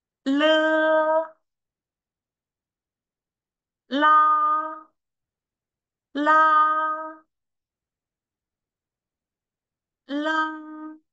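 A young woman pronounces single syllables slowly and clearly into a close microphone, with pauses between them.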